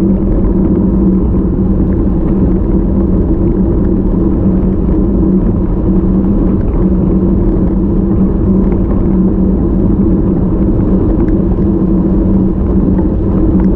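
Bicycle tyres hum steadily on asphalt.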